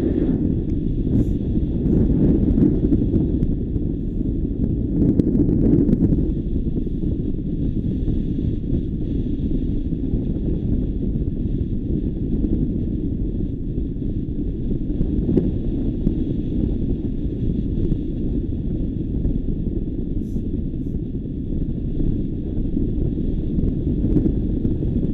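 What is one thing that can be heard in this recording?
Strong wind rushes and buffets steadily past the microphone high in the open air.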